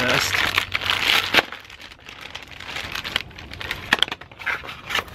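Plastic packaging crinkles and rustles as it is torn open.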